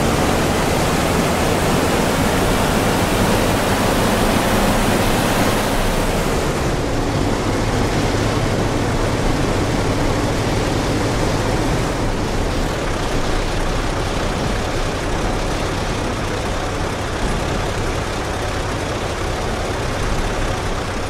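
A bus engine drones steadily as the bus drives along.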